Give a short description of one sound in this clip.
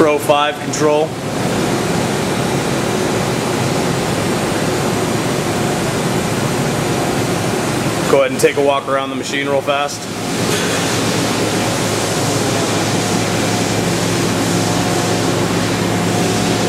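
Machinery hums steadily nearby.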